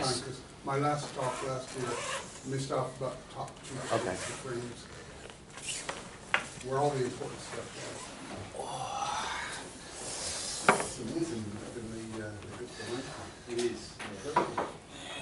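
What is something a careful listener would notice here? A young man talks calmly at close range.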